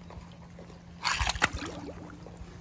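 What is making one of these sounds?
A toy car splashes into pool water.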